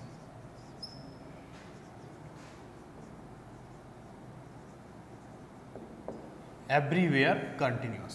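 A marker squeaks and scratches on a whiteboard.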